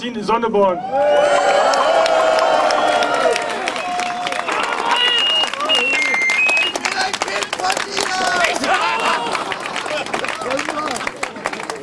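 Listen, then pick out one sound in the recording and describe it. A crowd claps rapidly.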